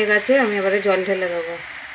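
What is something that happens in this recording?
Water pours into a hot pan.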